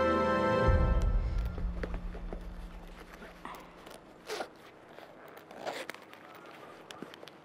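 A leather bag rustles and creaks as it is handled.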